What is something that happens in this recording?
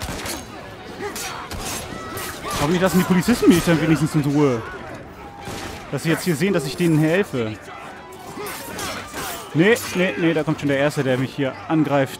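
Fists thump in quick blows during a brawl.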